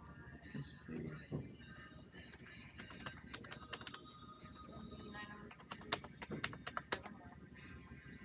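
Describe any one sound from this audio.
A man types on a keyboard with soft clicks.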